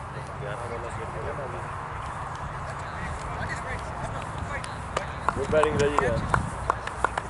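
Men talk casually outdoors.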